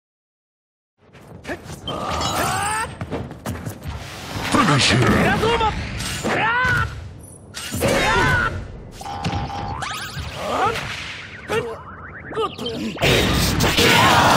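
Punches and sword strikes land in quick succession.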